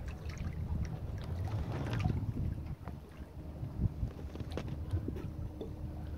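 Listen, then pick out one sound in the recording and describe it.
Small waves lap and splash gently against rock.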